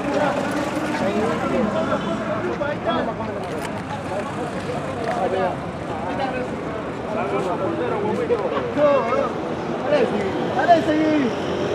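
Cars drive past on a street.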